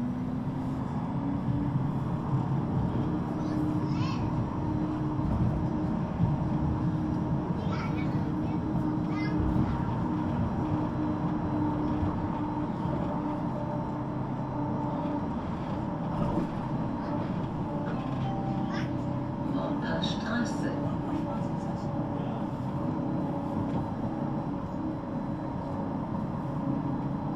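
A tram's electric motor hums steadily.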